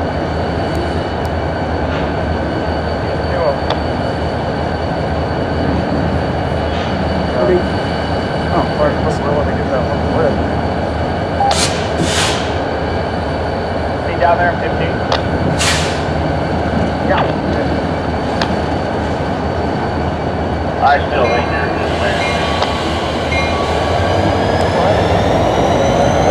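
Freight cars roll slowly along the tracks with a steady low rumble.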